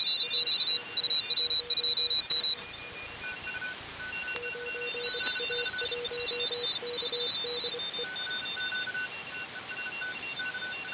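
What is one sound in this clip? Digital radio signals beep in short, rapid bursts over a hiss of static.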